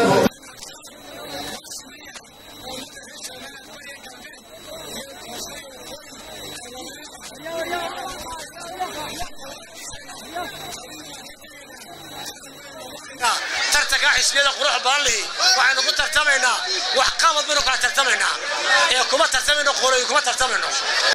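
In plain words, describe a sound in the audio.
A man speaks forcefully into a microphone through loudspeakers, growing louder and more animated partway through.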